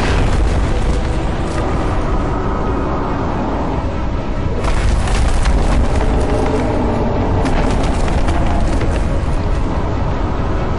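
Debris crackles and clatters as it falls.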